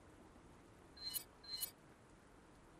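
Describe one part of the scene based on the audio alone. Short electronic menu tones chime twice in quick succession.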